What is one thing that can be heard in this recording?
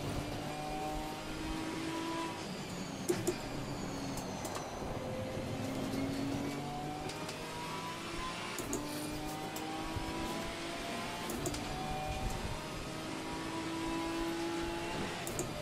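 Rain patters steadily on a car's windscreen.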